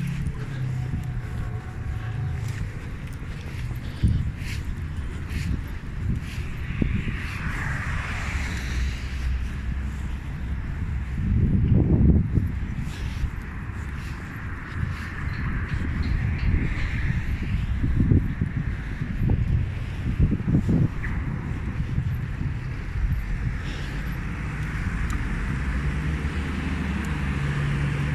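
Traffic rumbles steadily along a street outdoors.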